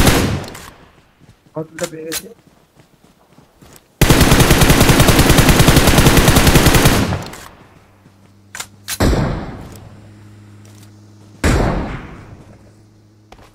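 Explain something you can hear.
Single loud gunshots ring out with echoes.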